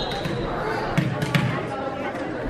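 A volleyball bounces on a wooden floor.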